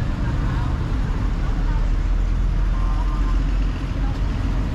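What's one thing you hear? A bus rumbles past nearby.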